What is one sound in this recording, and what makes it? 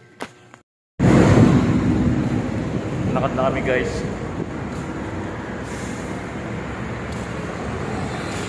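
Traffic rumbles steadily outdoors on a busy street.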